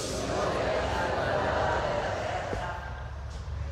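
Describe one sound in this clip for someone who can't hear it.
A woman speaks calmly through a loudspeaker in a large echoing hall.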